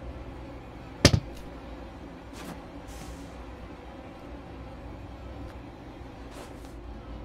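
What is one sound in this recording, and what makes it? Footsteps thud softly on wooden floorboards.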